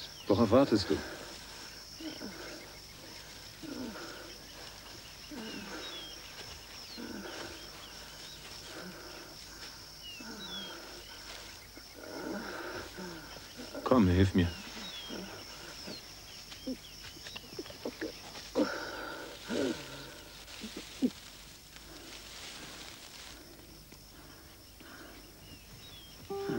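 A man speaks quietly in a low voice nearby.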